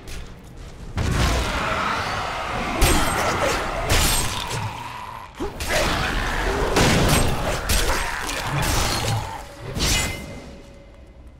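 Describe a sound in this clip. Blades clash and strike in a noisy fight.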